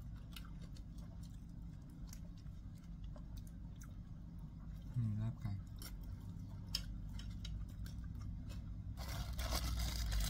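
An older woman chews food with soft clicking sounds.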